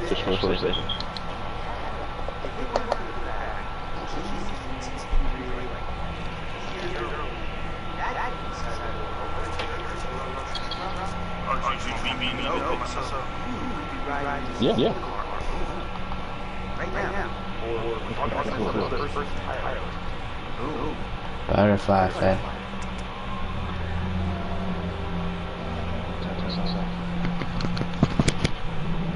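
A cable car hums and rumbles steadily.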